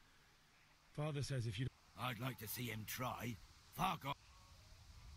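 A middle-aged man shouts angrily.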